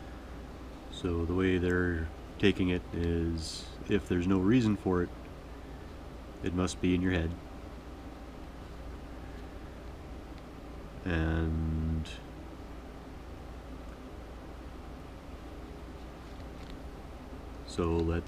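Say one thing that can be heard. A man talks calmly close by, with pauses.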